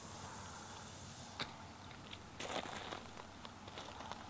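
A fishing rod swishes through the air.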